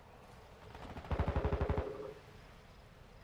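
A rifle fires a short rapid burst close by.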